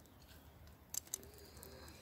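Seeds patter lightly onto soil.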